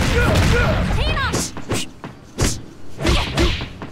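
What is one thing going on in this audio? A body slams down hard onto a mat.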